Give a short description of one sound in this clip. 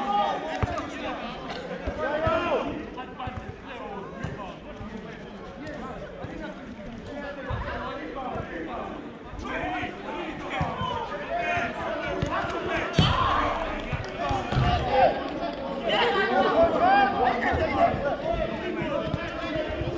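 Adult men shout and call to one another outdoors, at a distance.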